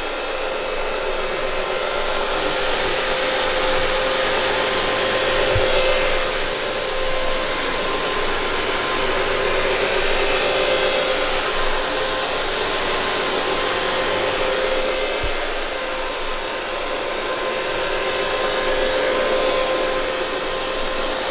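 Brushes scrub wetly across a carpet.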